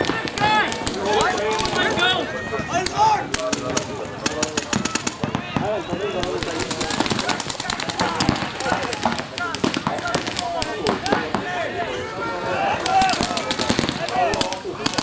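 Paintball markers fire rapid bursts of popping shots.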